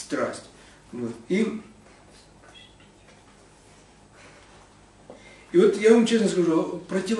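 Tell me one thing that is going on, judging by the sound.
A man reads aloud calmly, close by, with pauses.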